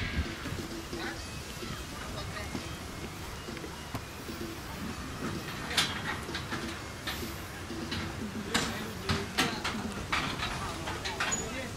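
Young men shout to one another in the distance outdoors.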